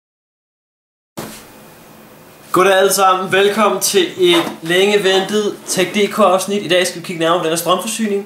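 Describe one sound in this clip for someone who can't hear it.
Hands shift a cardboard box on a hard table.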